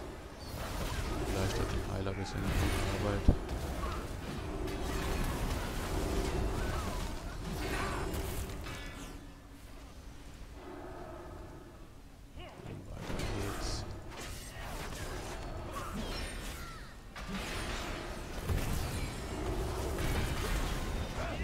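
Weapons clash and spells burst in a game battle.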